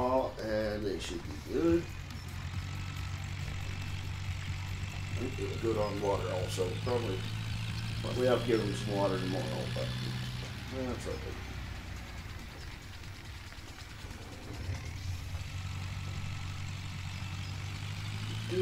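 A tractor engine drones steadily at low revs.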